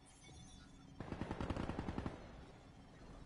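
An automatic rifle fires a rapid burst close by.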